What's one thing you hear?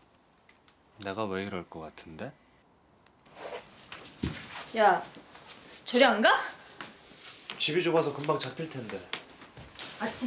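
A young man speaks close by, calmly and teasingly.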